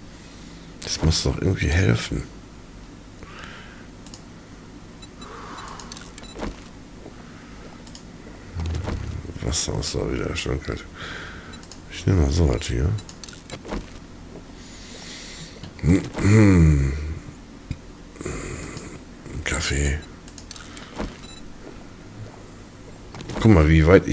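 A character in a game gulps down drinks with loud swallowing sounds.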